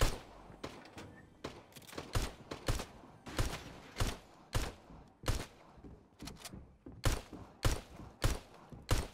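A pickaxe strikes a hard surface in quick, repeated thuds.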